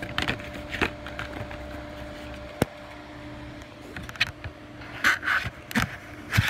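Fabric rustles and scrapes close to the microphone.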